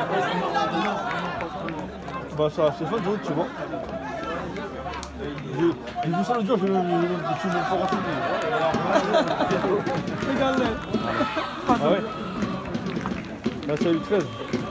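A crowd of fans cheers and chants loudly outdoors.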